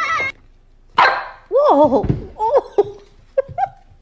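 A puppy whines and yelps.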